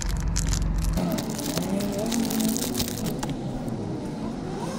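A plastic wrapper crinkles close by.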